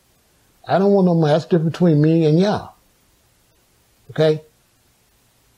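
An older man speaks close to the microphone in a slow, drawn-out voice.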